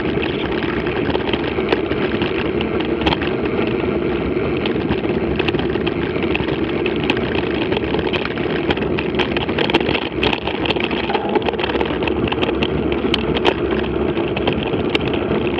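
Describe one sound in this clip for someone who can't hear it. Bicycle tyres crunch over a dirt track.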